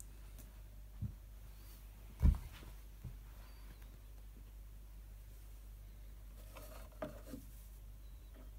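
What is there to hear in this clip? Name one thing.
A vinyl record is placed onto a turntable with soft knocks and clicks.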